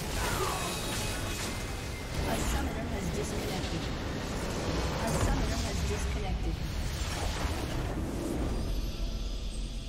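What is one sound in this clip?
Spells and weapon strikes clash loudly in a fast battle.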